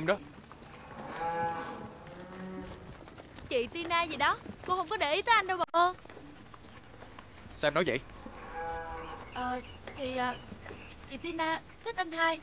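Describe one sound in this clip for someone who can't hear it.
A young woman speaks sharply close by.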